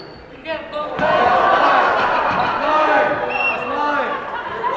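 Spectators cheer loudly in a large echoing gym.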